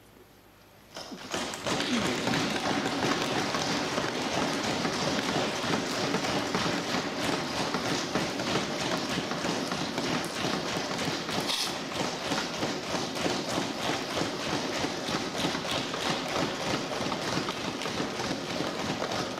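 A crowd claps and thumps desks loudly and steadily.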